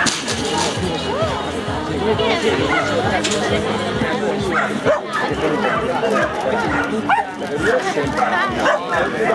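Spectators chatter nearby outdoors.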